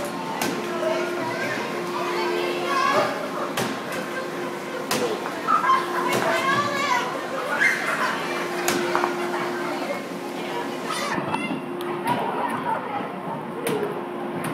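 Balls clatter and knock through metal tracks.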